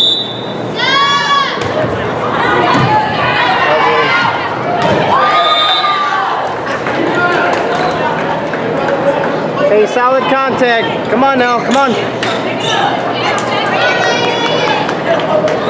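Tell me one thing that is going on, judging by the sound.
Girls shout and cheer on the court.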